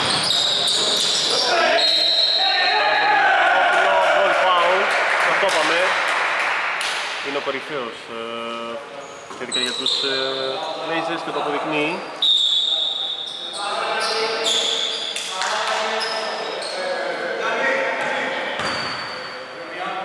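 Men shout and call out to each other in an echoing hall.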